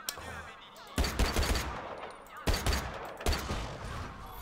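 Gunshots bang loudly in quick bursts.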